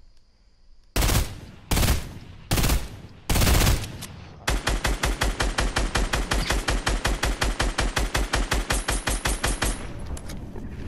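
Heavy gunshots ring out one at a time, then in a fast rapid burst.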